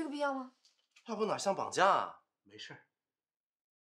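A young woman speaks briefly and calmly up close.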